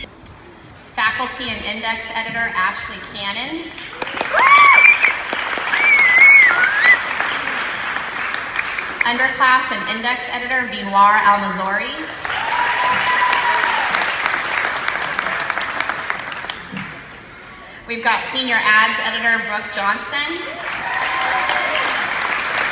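A group of young girls sings together through loudspeakers in a large echoing hall.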